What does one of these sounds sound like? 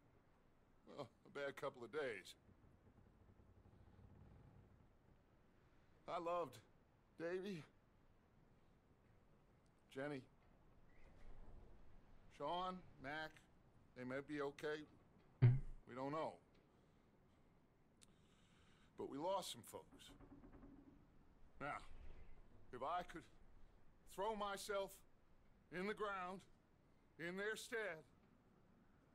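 A man speaks slowly and gravely in a low voice.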